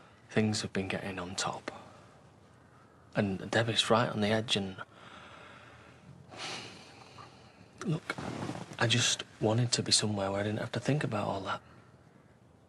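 A man speaks quietly and earnestly, close by.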